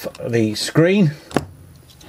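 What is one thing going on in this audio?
A small metal tool scrapes and clicks against metal.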